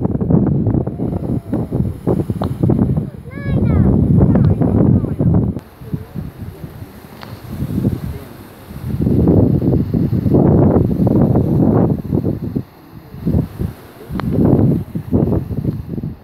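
Strong wind gusts rumble across the microphone outdoors.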